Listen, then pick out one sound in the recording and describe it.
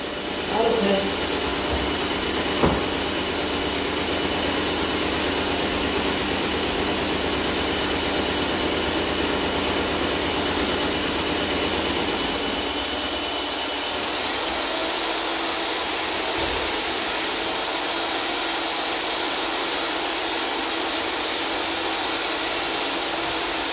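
A paint sprayer hisses and hums steadily.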